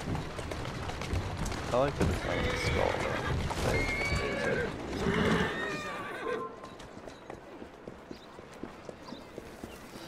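Horse hooves clop on a street.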